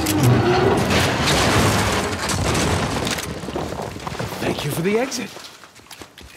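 Loud explosions and gunfire roar.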